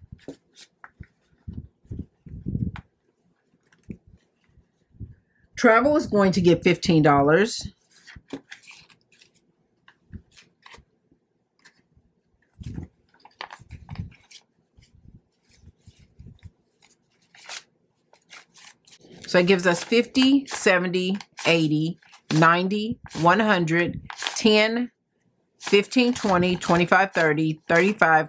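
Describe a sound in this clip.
Paper money rustles and crinkles as bills are handled and counted.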